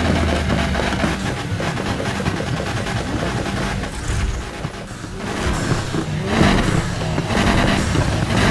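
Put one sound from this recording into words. A car engine revs loudly and backfires.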